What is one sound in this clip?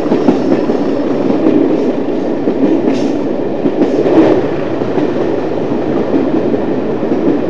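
A steam train rumbles and clatters steadily along the track.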